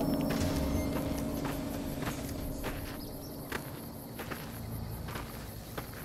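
Footsteps crunch steadily on dry gravel.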